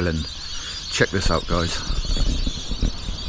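A man talks close to the microphone.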